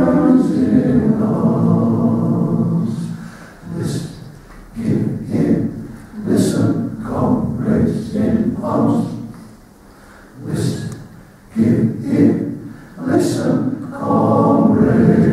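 A men's choir sings together in a large hall, with phrases rising and falling in pitch.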